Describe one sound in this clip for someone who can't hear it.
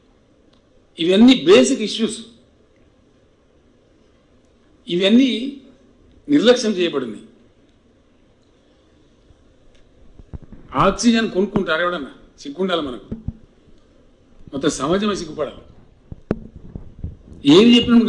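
An elderly man speaks slowly into a microphone, with pauses between phrases.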